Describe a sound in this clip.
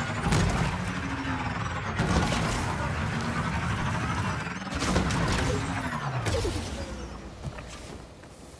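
A motorbike engine roars and revs up and down.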